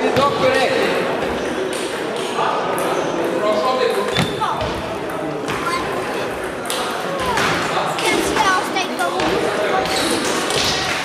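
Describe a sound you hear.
Table tennis balls click against tables and paddles in an echoing hall.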